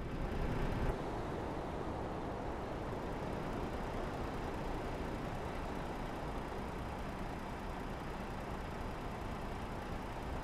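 A diesel semi-truck engine idles.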